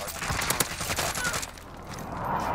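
Sharp gunshots crack in quick bursts.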